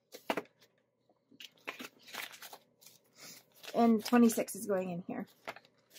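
Paper bills rustle and crinkle as hands handle them.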